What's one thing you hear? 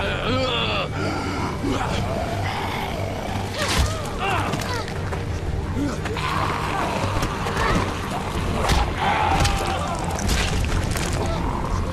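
Heavy blows thud during a scuffle.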